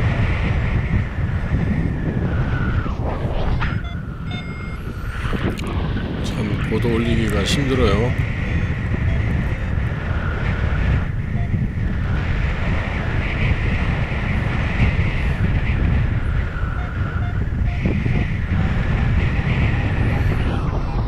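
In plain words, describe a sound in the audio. Wind roars and buffets steadily against the microphone in open air.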